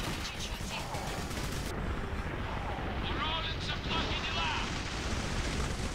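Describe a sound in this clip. A rapid-fire gun roars in long bursts.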